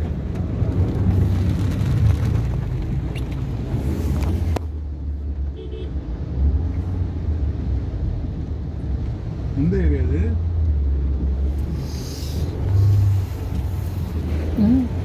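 A car's engine rumbles low inside.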